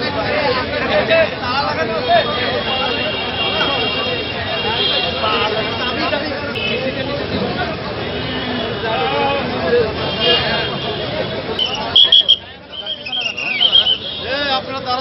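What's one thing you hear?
A large crowd of men talks and shouts nearby, outdoors.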